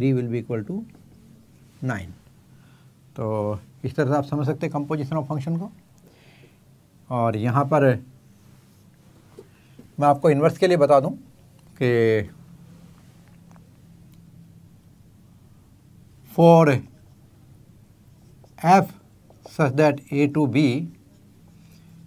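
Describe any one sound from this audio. An elderly man speaks calmly in short phrases, close by.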